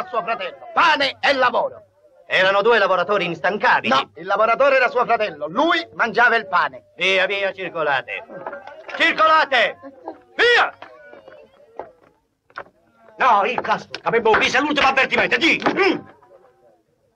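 Men talk with animation, close by.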